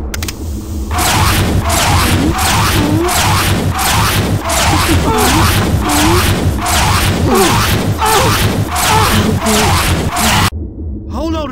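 A gun fires rapid, repeated shots.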